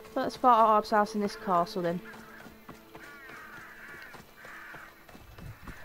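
Footsteps pad quickly over a dirt path.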